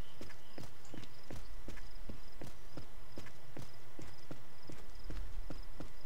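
Footsteps crunch quickly and steadily over leafy ground.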